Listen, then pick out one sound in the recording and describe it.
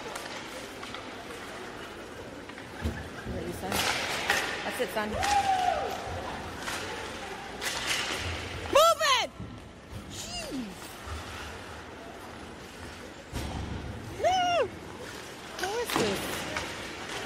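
Ice skates scrape and hiss across the ice in an echoing arena.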